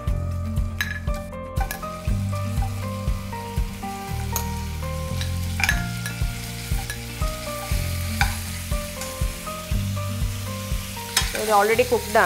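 A metal spoon scrapes and clinks against a bowl and pan.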